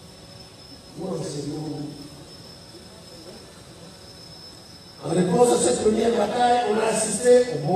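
A man speaks into a microphone through loudspeakers outdoors, in measured bursts.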